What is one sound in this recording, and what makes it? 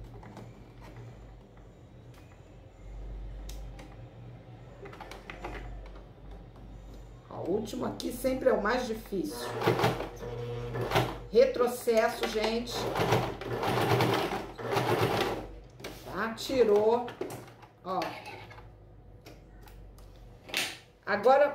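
A sewing machine hums and whirs steadily as it stitches.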